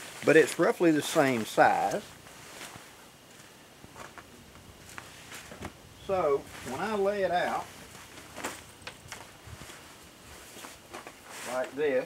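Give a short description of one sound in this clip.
A sheet of stiff fabric rustles and crinkles as it is unfolded.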